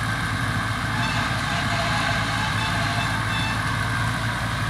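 A baler's hydraulic gate lifts with a whine and clatter.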